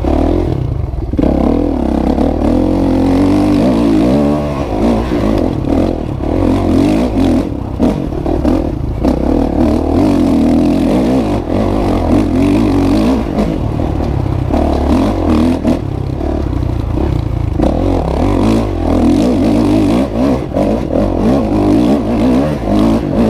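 A dirt bike engine roars loudly up close, revving up and down.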